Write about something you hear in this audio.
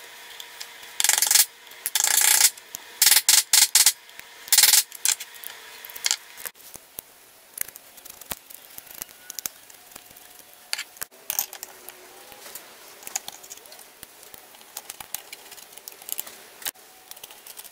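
Metal parts click and tap.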